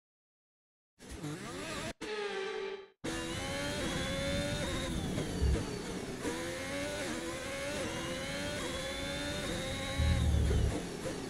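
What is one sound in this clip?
A racing car engine whines at high revs, rising and falling as it shifts gears.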